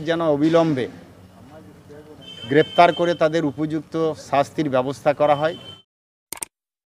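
A middle-aged man speaks firmly into a microphone outdoors.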